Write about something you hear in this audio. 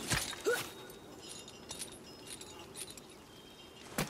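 A heavy chain rattles as someone climbs it.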